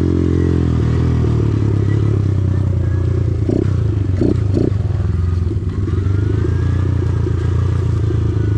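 A dirt bike engine buzzes and revs steadily.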